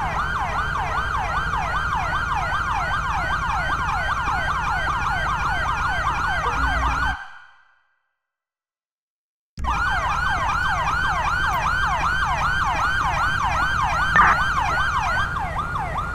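A siren wails quickly and steadily nearby.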